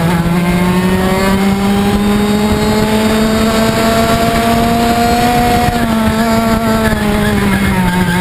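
A go-kart engine buzzes loudly close by, its pitch rising slowly and then dropping.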